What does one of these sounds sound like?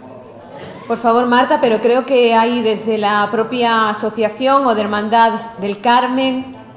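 A young woman speaks clearly through a microphone.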